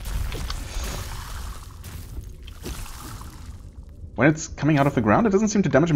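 Blades slash and strike with heavy thuds.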